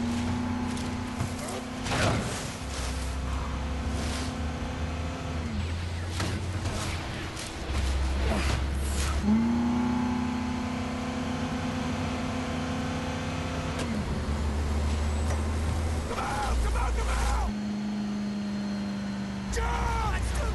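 A heavy truck engine roars at speed.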